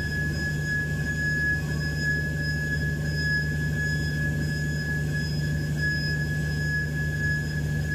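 A belt or pulley whines steadily under the hood.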